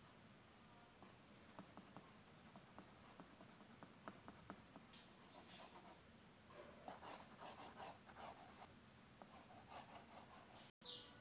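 A pencil scratches and rasps across paper in quick strokes.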